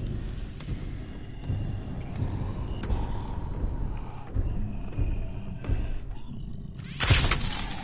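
A heavy creature's footsteps thud close by.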